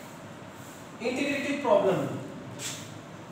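A man speaks up close, calmly, as if teaching.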